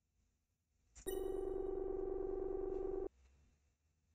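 A steady electronic hum plays.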